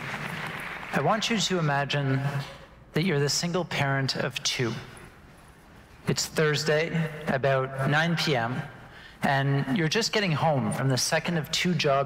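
A man speaks calmly to an audience through a headset microphone.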